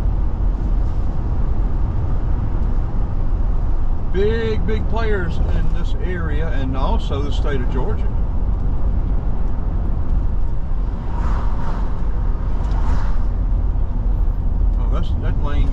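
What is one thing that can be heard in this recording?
A car drives along a road with a steady low rumble.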